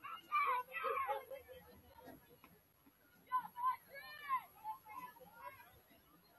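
Young players shout to each other across an open field, some way off.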